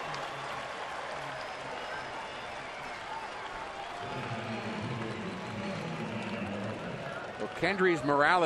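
A large crowd cheers and murmurs.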